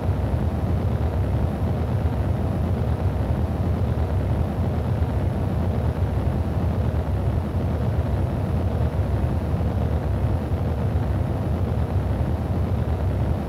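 A rocket engine roars steadily with a deep rumble.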